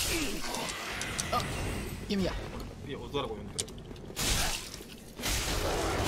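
A sword swings and strikes with a clang.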